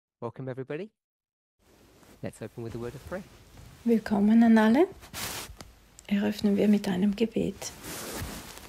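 A man speaks calmly into a headset microphone, heard over an online call.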